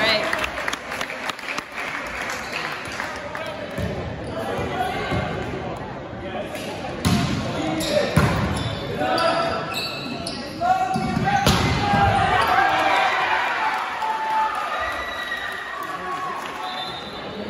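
A crowd of young spectators cheers and shouts in a large echoing gym.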